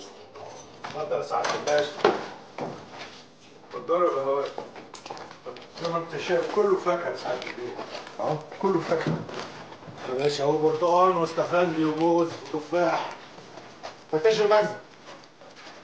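An elderly man speaks loudly and with emotion.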